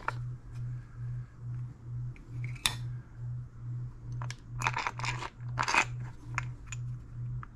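Metal engine parts click and clack as they are handled.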